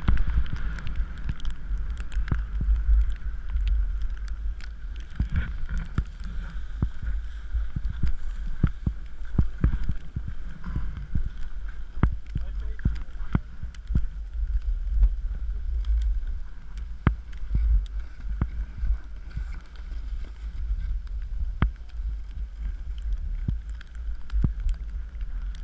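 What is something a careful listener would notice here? Skis scrape and hiss over packed snow.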